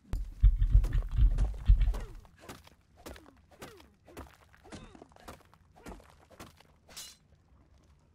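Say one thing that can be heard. A pickaxe strikes rock in quick repeated blows.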